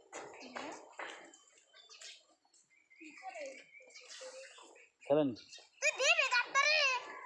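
Children talk and call out nearby, outdoors.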